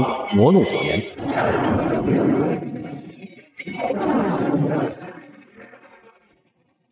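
A powerful energy blast roars and surges.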